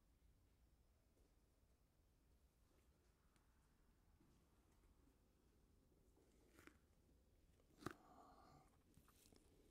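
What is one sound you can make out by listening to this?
Bodies shift and rustle softly on floor mats.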